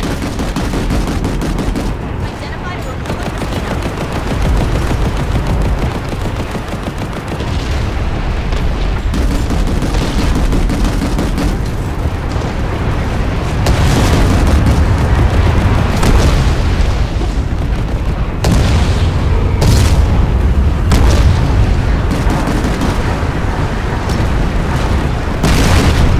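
An aircraft engine roars overhead.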